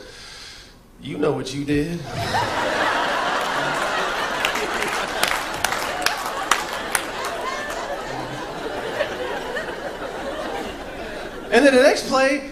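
An audience laughs and applauds loudly.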